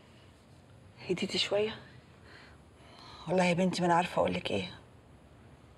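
A middle-aged woman speaks quietly and emotionally, close by.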